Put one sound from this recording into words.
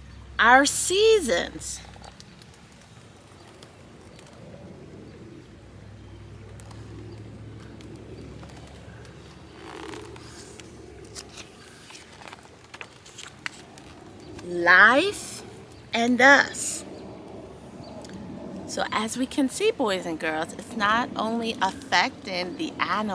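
A young woman reads aloud with animation, close to the microphone.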